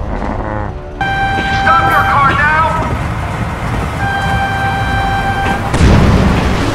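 A train horn blares in long steady blasts.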